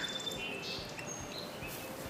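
A boy gulps a drink from a bottle.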